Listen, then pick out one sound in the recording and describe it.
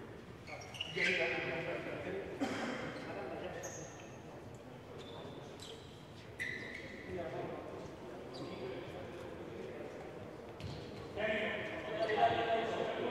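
Male players shout across an echoing hall.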